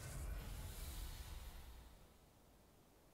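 A fiery blast roars and crackles, then dies away.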